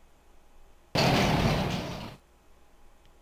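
A door slides open with a hiss.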